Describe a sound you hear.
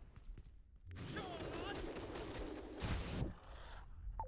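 A whooshing spin attack swishes through the air.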